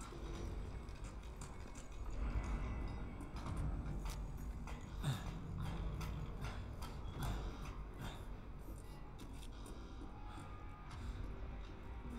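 Footsteps clank slowly on a metal grating floor.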